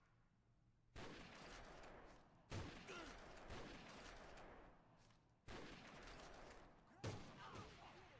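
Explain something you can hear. A rifle fires loud single shots with a ringing echo.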